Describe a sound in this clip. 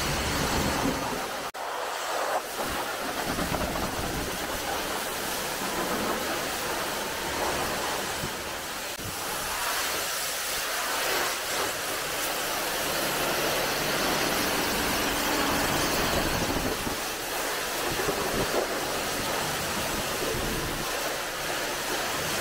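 A pressure washer sprays water hard against a car with a loud, steady hiss.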